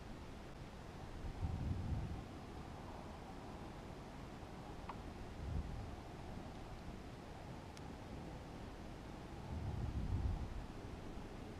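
Wind rumbles and buffets in low gusts.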